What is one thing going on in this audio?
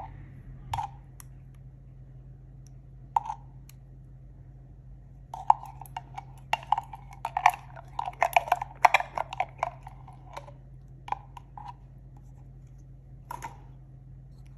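A metal spoon clinks and scrapes against a glass jar.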